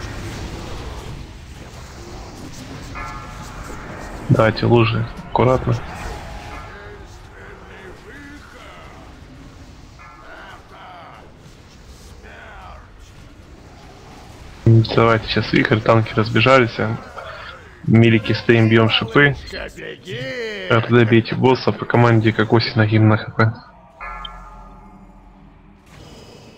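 Magic spells crackle and whoosh in a fierce battle.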